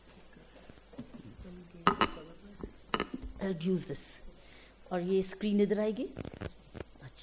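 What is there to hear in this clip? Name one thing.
A middle-aged woman speaks briefly through a microphone.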